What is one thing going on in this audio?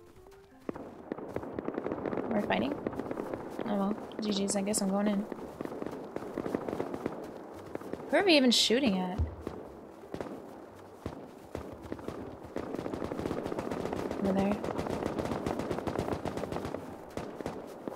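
Footsteps crunch through snow.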